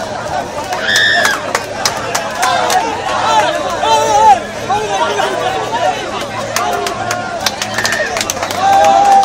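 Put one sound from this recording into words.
Men whistle shrilly in a crowd.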